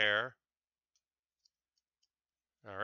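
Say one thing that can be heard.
Plastic toy bricks click together.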